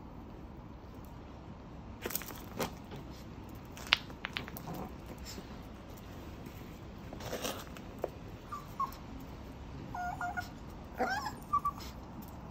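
A puppy's claws tap and scrape on concrete.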